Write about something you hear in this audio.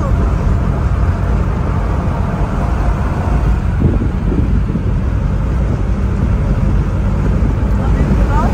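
A car drives along a highway with a steady low road rumble.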